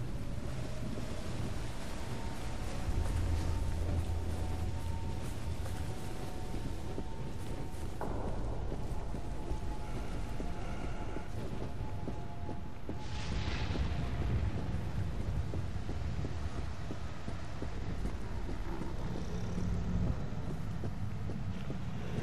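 Footsteps walk steadily on stone paving.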